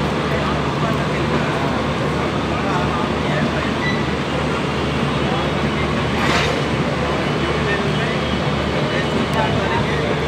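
A passenger train rumbles and clatters steadily along the tracks close by.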